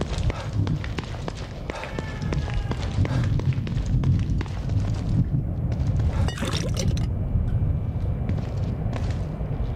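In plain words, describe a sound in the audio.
Footsteps run across a hard tiled floor.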